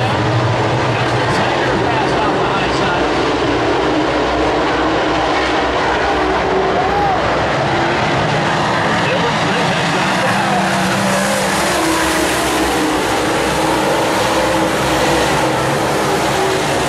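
Race car engines roar loudly as the cars speed around a dirt track.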